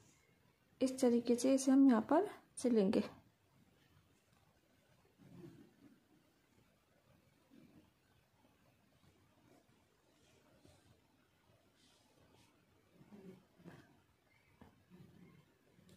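Hands rub and rustle soft knitted fabric.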